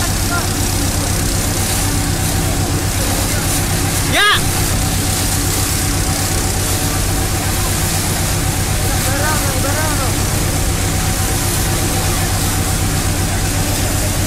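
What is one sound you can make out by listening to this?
Water sprays and hisses from fire hoses.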